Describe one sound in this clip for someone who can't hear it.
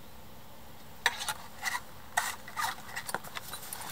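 Cord rustles and creaks as it is handled.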